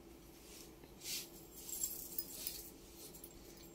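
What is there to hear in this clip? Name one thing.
Fabric rustles softly as it is unfolded and handled.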